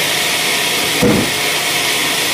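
A heavy log thuds as it is pushed onto a sawmill carriage.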